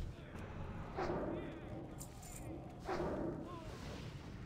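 Magic spells whoosh and burst in short blasts.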